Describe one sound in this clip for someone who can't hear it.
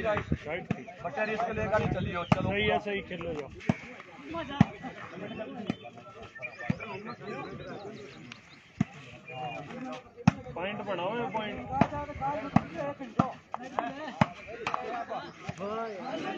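A volleyball is slapped by hand with sharp smacks.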